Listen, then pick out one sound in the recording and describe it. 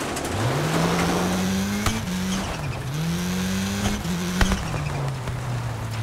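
Gravel crunches and sprays under a car's tyres.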